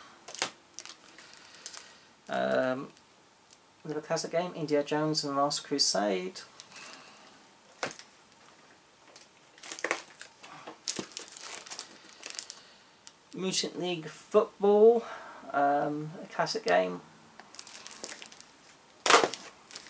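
Plastic game cases click and rattle in hands.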